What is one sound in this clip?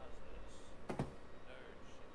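A book is set down on a wooden table with a soft knock.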